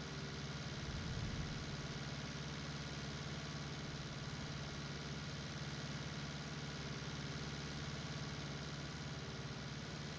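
A tractor engine drones steadily from inside the cab.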